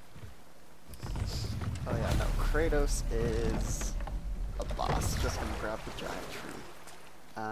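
A river rushes and splashes.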